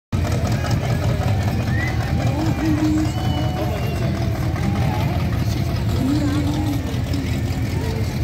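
A powerful engine rumbles loudly nearby.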